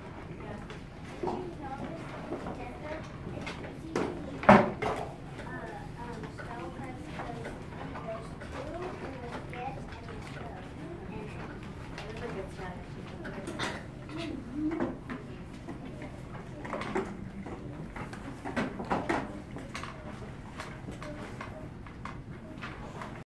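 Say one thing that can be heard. A young woman talks and reads aloud to a group.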